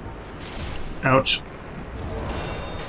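A fireball bursts with a loud whoosh.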